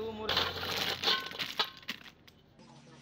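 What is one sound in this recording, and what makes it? Broken brick pieces rattle as they are tipped into a hole.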